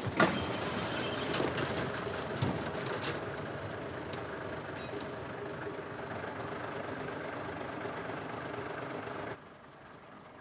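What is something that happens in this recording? A truck engine idles with a steady rumble.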